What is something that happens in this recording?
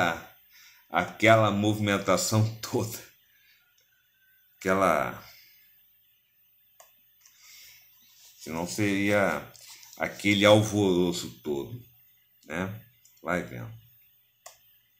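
A man speaks with animation into a close microphone, with long pauses.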